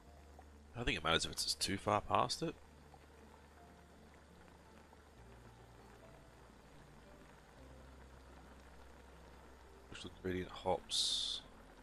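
A pot of liquid bubbles at a steady boil.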